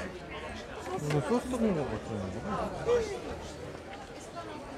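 A woman answers in a friendly voice.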